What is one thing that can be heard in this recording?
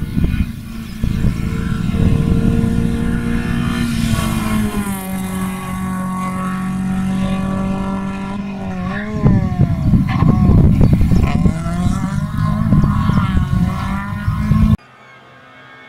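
A rally car engine roars loudly as it speeds past, revving up and down through the gears.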